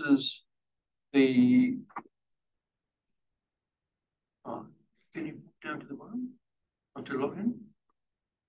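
A man speaks calmly in short bursts with pauses.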